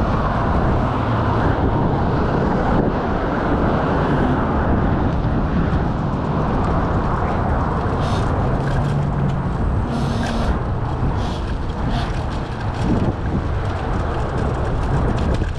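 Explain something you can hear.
Wind buffets loudly and steadily across a moving bicycle.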